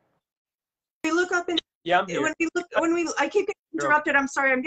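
A middle-aged woman speaks earnestly over an online call.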